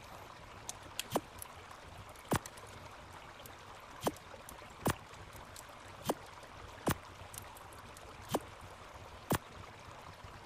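Soft clicks sound one after another at an unhurried pace.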